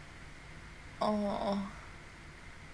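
A young woman laughs briefly, close to a microphone.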